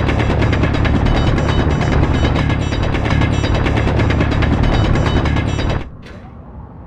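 A drill grinds loudly against rock with a harsh, rattling roar.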